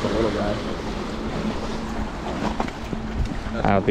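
Small waves splash against rocks.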